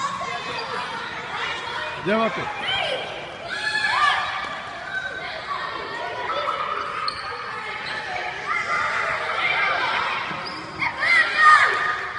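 Many children chatter and shout in a large echoing hall.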